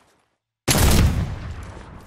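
A pickaxe strikes a wall with sharp, heavy knocks.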